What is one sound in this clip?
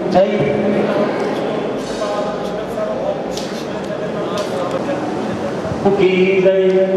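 A man sings through a microphone, with a long, held melody.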